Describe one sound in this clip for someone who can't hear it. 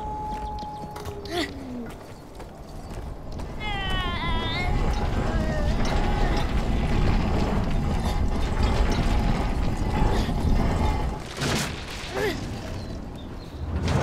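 A heavy metal cage scrapes and rumbles as it is pushed.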